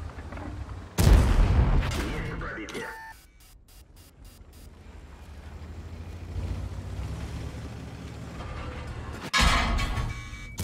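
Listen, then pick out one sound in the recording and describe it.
A tank cannon fires with a loud boom that rolls away.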